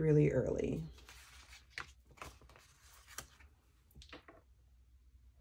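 Paper sheets rustle and crinkle as they are handled.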